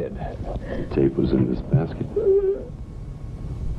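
An elderly man speaks in a low, gruff voice.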